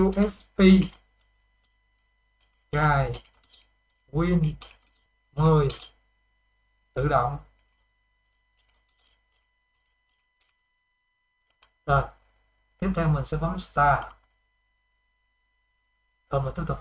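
A young man talks calmly and close to a microphone, in short phrases with pauses.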